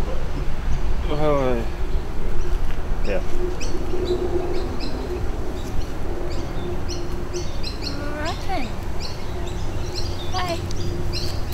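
A young woman speaks up close in a high, coaxing voice.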